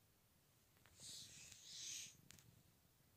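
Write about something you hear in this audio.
Paper rustles as a book page is turned.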